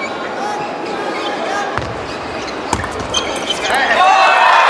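A ping-pong ball clicks sharply against paddles and a table in a quick rally.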